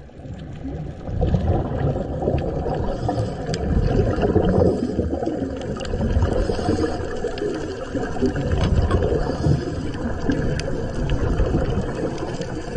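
Air bubbles from scuba divers burble and rumble underwater.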